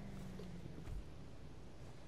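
A car door shuts with a dull thud.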